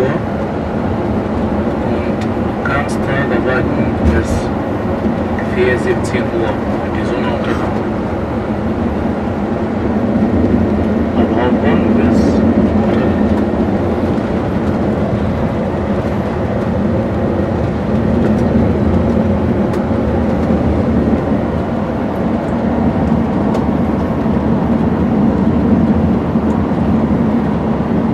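A bus engine hums steadily from inside as it drives along.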